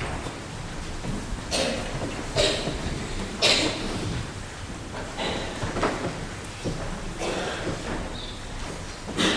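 A man speaks in a low voice in a large echoing hall.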